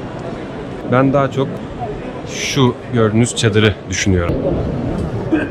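A young man speaks with animation close to the microphone.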